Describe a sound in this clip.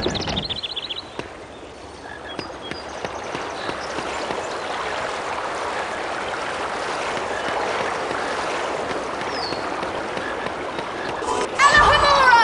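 Water splashes steadily from a fountain.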